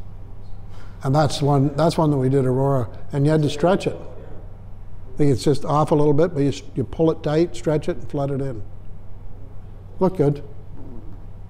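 An elderly man speaks calmly.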